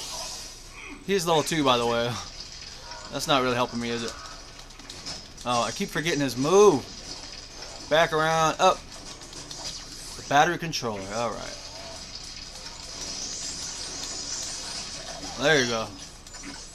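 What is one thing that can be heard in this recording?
Video game fighting sounds clash and zap.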